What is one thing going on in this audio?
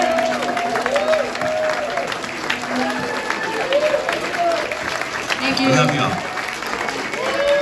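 A crowd cheers and chatters loudly in a large echoing hall.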